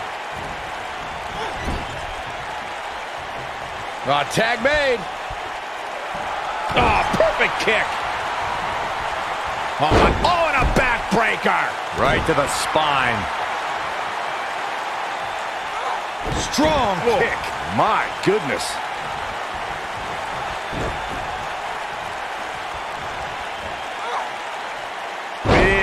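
A large crowd cheers steadily in a big echoing arena.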